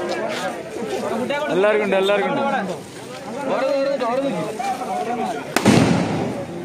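Several men talk loudly and excitedly close by.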